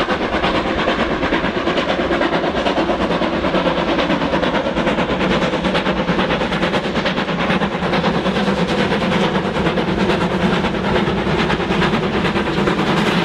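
Steam locomotives chuff hard and rapidly as they haul a train uphill.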